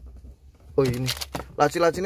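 A cardboard box rustles as a hand picks it up.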